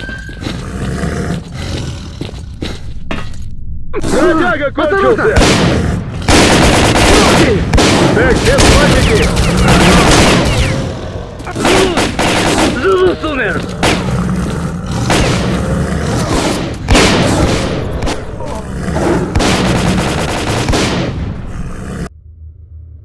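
Automatic gunfire rattles loudly in rapid bursts.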